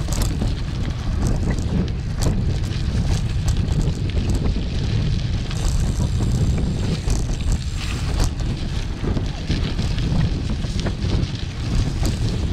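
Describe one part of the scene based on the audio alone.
Tyres crunch and rattle over a rough dirt track.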